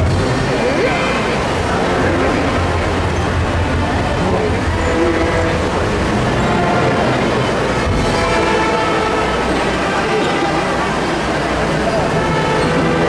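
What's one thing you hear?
A large crowd murmurs and chatters close by, outdoors.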